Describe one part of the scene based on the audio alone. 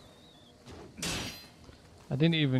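A sword swings with a sharp whoosh.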